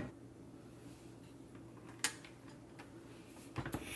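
A rice cooker lid snaps shut.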